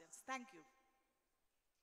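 An older woman speaks into a microphone, heard through loudspeakers.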